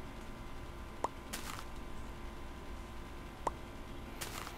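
A game block makes short clicks.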